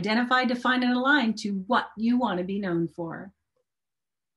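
A middle-aged woman speaks with animation, close to a microphone.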